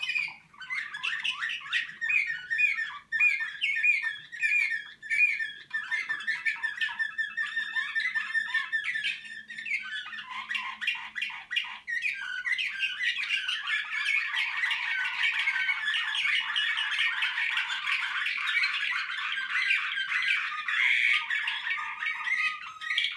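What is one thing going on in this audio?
Caged songbirds sing loud, fast trilling songs close by.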